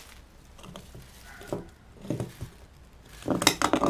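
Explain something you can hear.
A glass jar knocks on a hard floor.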